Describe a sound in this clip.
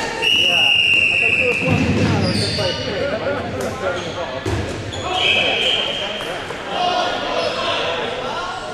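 A crowd of young men and women chatter and call out in a large echoing hall.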